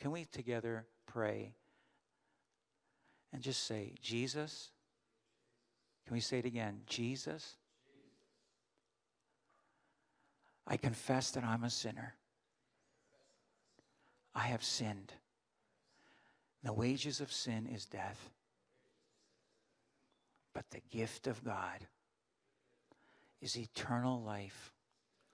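An elderly man speaks calmly into a microphone over loudspeakers, pausing between phrases.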